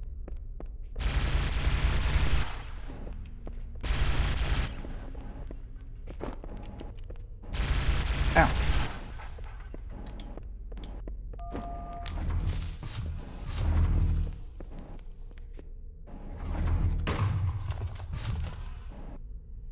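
Plasma weapons fire in loud rapid bursts.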